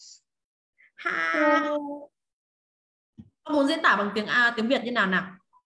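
A young girl speaks with animation over an online call.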